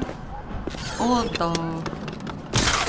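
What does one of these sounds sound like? A small robot chirps and beeps in rising electronic tones.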